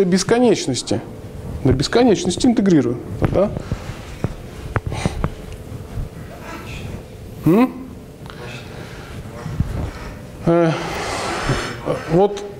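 A young man lectures with animation in an echoing room.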